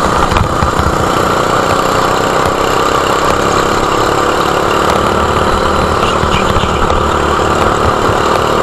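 A small kart engine buzzes loudly and steadily close by.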